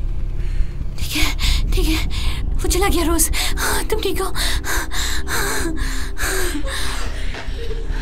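A young woman sobs and whimpers up close.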